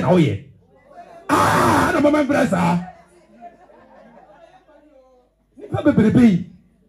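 A man speaks forcefully into a microphone over loudspeakers in an echoing hall.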